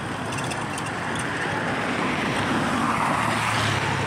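A motorbike engine hums as it approaches.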